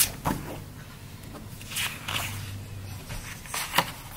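A booklet's page is turned over.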